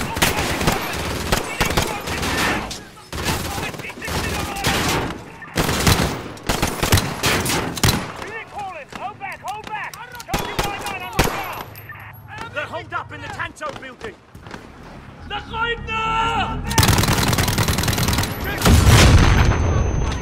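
Rapid gunshots crack and echo.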